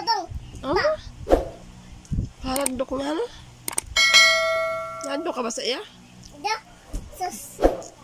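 A small child talks and babbles up close.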